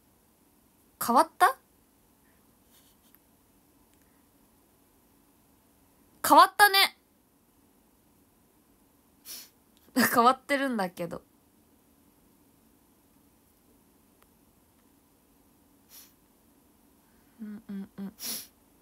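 A young woman speaks close to a microphone in short, lively bursts.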